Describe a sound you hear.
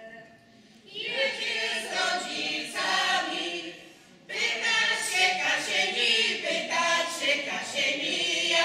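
A group of men and women sings together in a large echoing hall.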